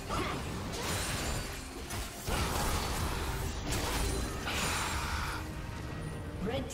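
Game sound effects of spells and hits crackle and whoosh.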